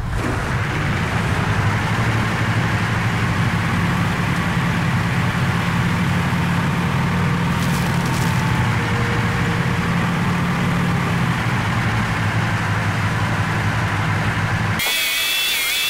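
A heavy tank engine rumbles steadily as the tank drives along.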